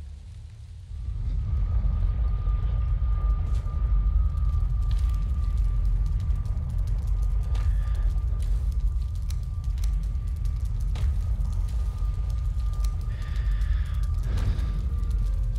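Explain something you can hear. A low magical portal hums and rumbles steadily.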